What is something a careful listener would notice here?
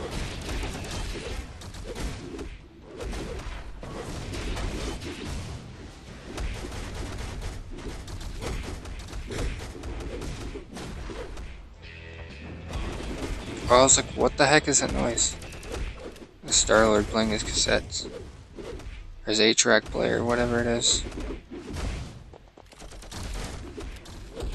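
Video game combat effects whoosh and clash with bursts of impacts.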